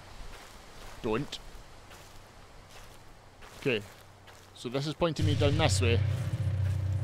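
A man speaks into a close microphone with animation.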